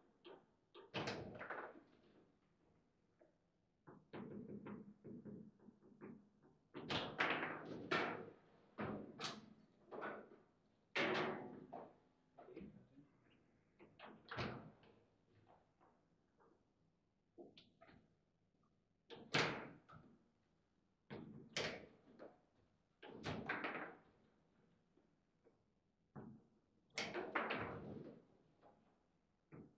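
Table football rods clack as they are spun and slammed.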